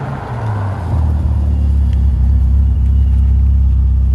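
An engine roars loudly as a sports car drives past.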